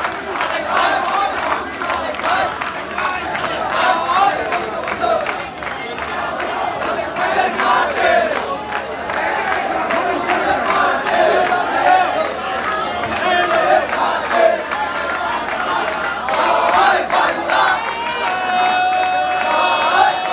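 A crowd of young men shouts and chatters outdoors.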